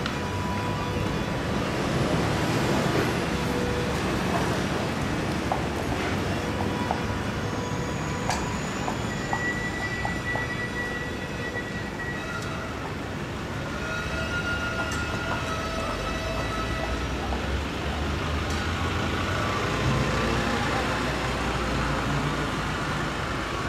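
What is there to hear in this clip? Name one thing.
Horse hooves clop on a paved street.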